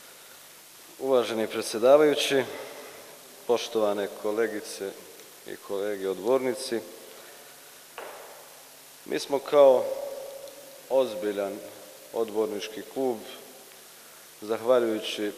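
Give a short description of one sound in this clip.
A man speaks with energy into a microphone, his voice echoing through a large hall.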